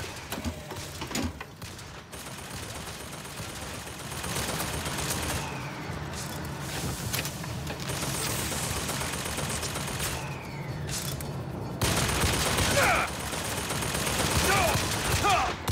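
A pistol fires several loud gunshots.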